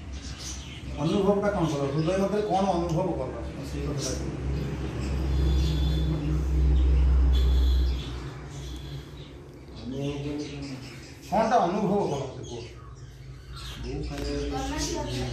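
A man speaks in a conversational tone close by.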